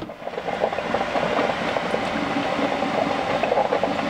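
A man gulps a drink.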